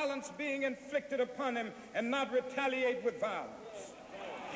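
A group of young performers sings together.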